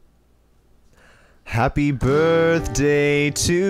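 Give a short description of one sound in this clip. Acoustic guitars strum.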